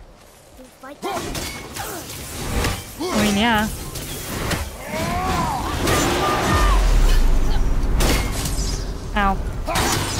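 Blows clash and thud in a fight.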